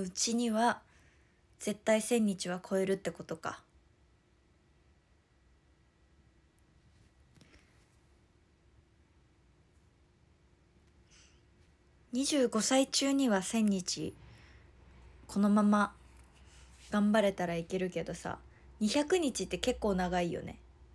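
A young woman speaks close to the microphone, in short bursts with pauses.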